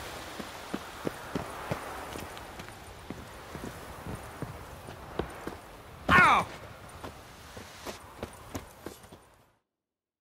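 Footsteps thud on stone and earth at a steady pace.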